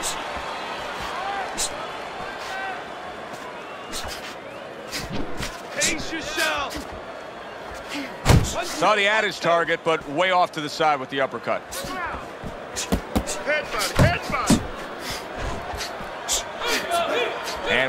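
Punches thud against a boxer's body and gloves.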